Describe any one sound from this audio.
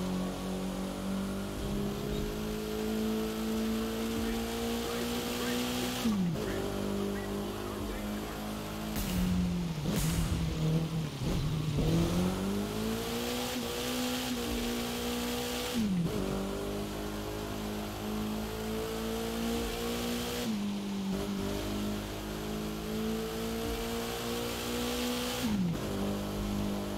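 Water sprays and splashes under speeding tyres.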